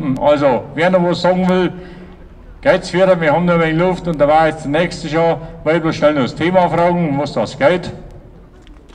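A man sings loudly into a microphone, heard through a loudspeaker outdoors.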